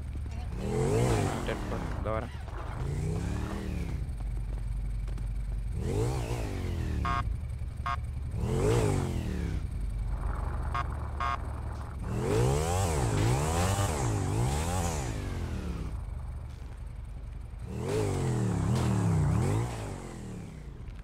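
A motorcycle engine revs up and down loudly, again and again.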